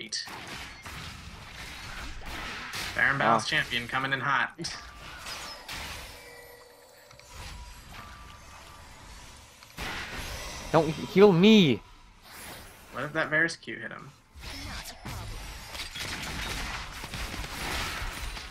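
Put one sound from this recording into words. Fantasy combat sound effects whoosh, zap and clash.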